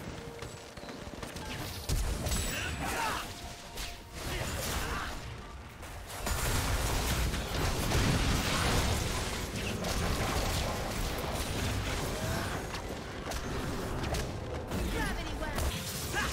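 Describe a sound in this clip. Game sound effects of spells, hits and explosions crackle and boom.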